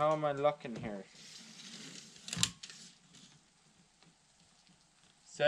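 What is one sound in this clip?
A tape measure clicks and rattles as it extends.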